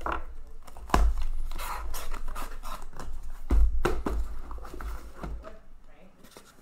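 Cardboard scrapes and rustles as a box is pulled open.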